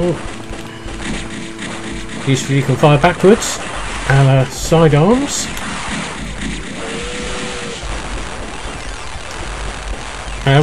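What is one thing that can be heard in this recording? Small guns fire in rapid bursts.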